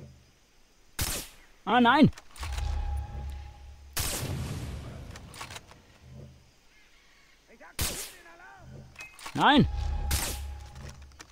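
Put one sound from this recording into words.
A sniper rifle fires sharp single shots.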